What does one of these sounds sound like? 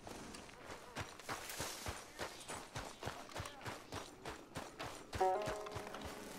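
Footsteps run over dirt.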